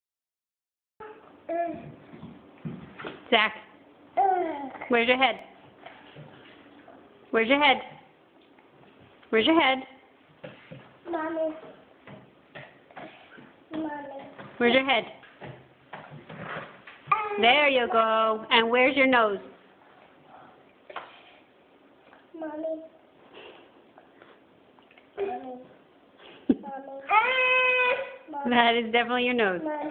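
A toddler babbles and talks in a small high voice close by.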